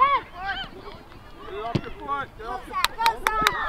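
A football thuds as a boy kicks it.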